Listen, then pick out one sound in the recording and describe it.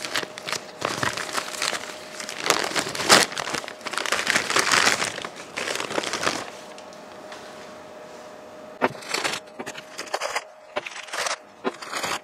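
Paper crinkles and rustles as hands unwrap metal parts.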